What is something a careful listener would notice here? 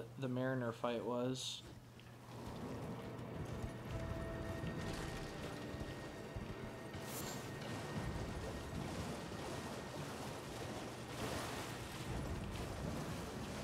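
Horse hooves clatter on rocky ground.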